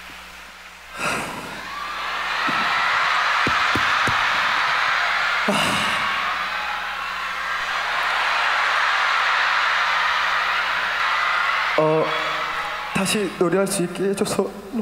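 A young man speaks emotionally into a microphone, heard through loudspeakers.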